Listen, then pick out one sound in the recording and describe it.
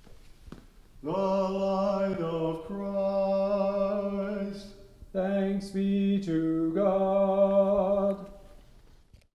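An elderly man chants a short line in a resonant hall.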